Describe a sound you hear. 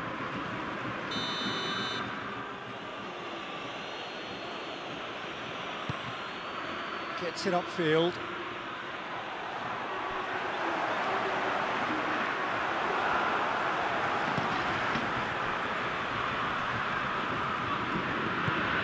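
A stadium crowd roars steadily and swells louder.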